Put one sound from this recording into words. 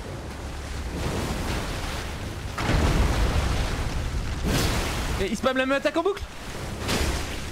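Heavy blows thud and crash as a fight rages.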